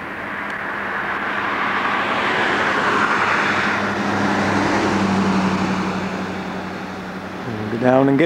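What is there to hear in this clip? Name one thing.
A pickup truck drives past on an asphalt road.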